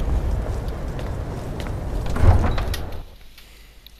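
A heavy door opens with a loud rumble.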